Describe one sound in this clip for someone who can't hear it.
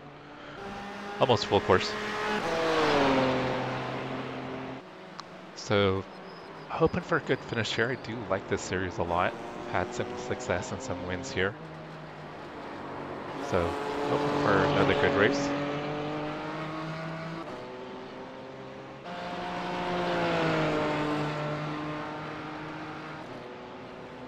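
Racing cars whoosh past one after another.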